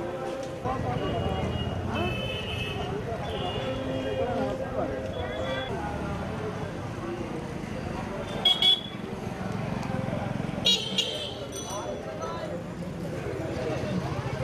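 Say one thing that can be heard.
A crowd of men chatters in a busy street outdoors.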